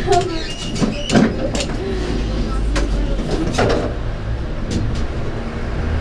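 Wheels click and knock over rail joints.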